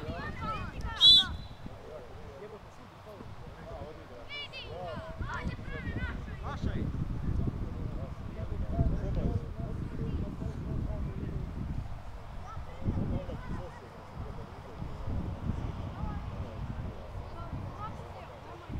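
Young male players shout to each other across an open field.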